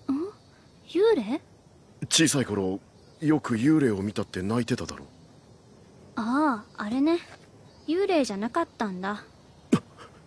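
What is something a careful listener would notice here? A young girl answers softly, close by.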